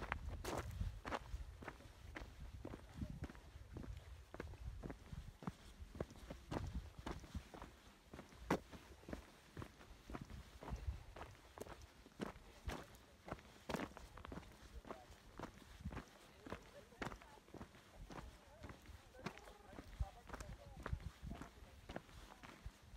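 Footsteps crunch steadily on a gravel trail.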